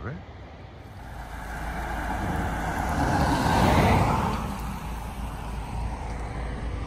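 A car drives past close by on a road.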